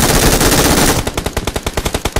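A gun fires in rapid bursts at close range.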